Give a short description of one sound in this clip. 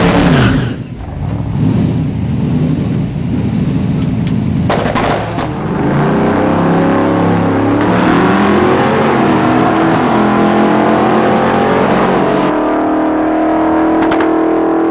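A car engine roars loudly from inside the car and climbs in pitch through the gears.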